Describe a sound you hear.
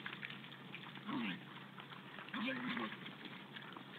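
Wild boars grunt and squeal.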